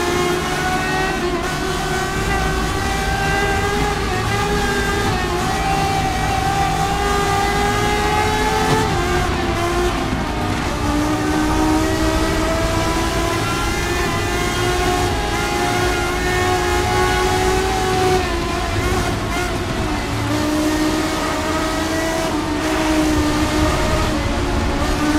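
A race car engine screams at high revs, rising in pitch and dropping at each gear shift.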